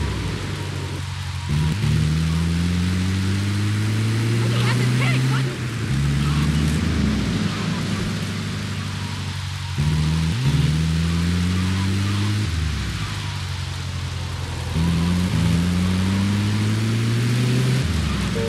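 A vehicle engine revs up and shifts gears repeatedly.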